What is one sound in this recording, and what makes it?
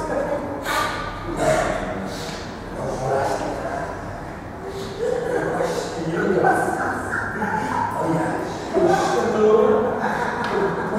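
A man speaks with animation into a microphone, amplified through loudspeakers in an echoing room.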